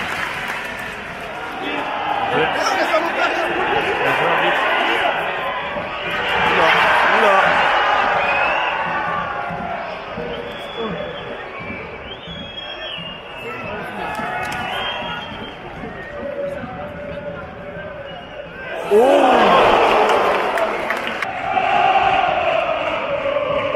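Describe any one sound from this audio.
A stadium crowd chants and sings loudly, outdoors.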